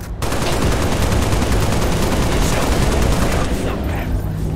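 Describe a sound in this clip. A rifle fires a rapid automatic burst.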